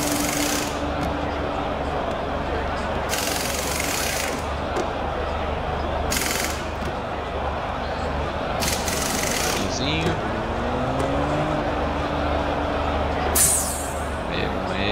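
A race car engine idles.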